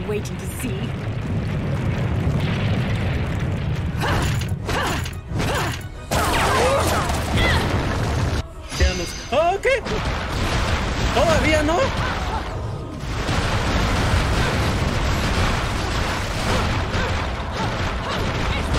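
Loud crashing and rumbling battle noises roar on.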